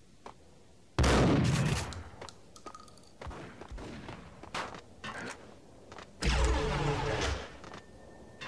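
A shotgun fires loud, booming blasts that echo.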